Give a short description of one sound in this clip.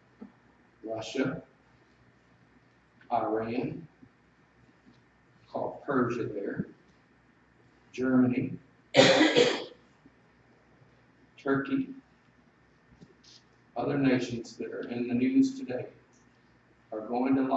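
An older man speaks slowly and deliberately into a microphone in an echoing room, with long pauses.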